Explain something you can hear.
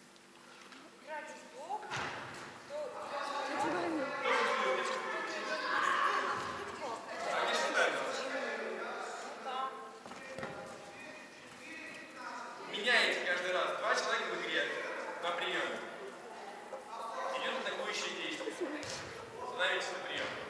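Several young adults talk and call out in a large echoing hall.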